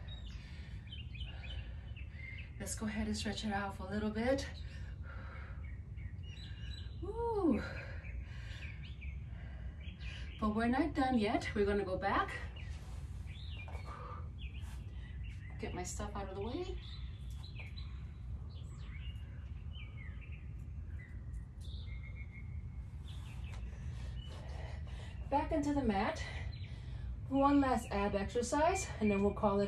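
A woman speaks calmly and slowly, giving instructions close to a microphone, with pauses.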